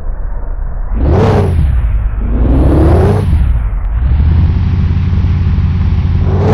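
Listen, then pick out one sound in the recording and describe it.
A car engine revs up and roars as the car pulls away.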